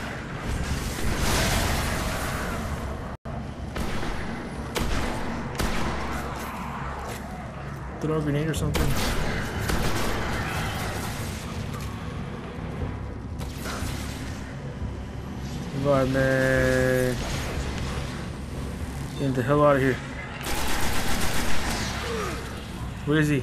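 Energy blasts crackle and explode.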